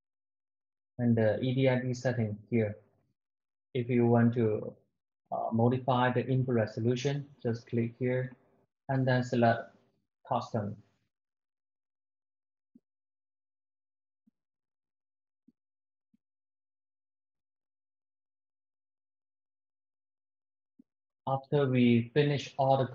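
A man speaks calmly into a microphone, pausing now and then.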